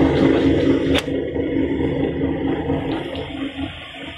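Grain pours and rustles into a metal bin.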